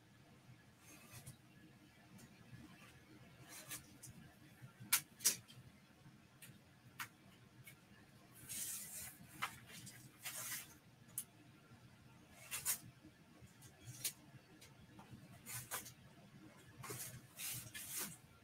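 Hands rub and peel a stiff foam sheet with soft scraping and crinkling.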